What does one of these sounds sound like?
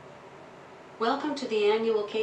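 A synthesized female voice speaks calmly through a small speaker nearby.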